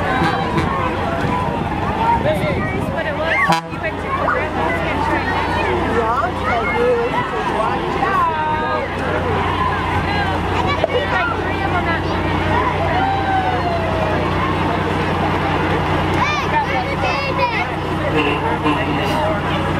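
A big truck's diesel engine rumbles low as it passes close by.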